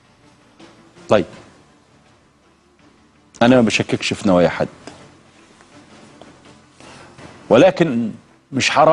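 A middle-aged man speaks emphatically over a phone line, in short bursts with pauses.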